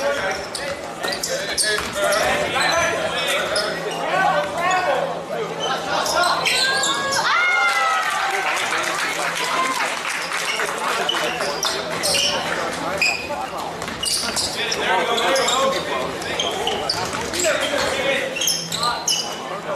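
A crowd of spectators chatters and cheers in an echoing hall.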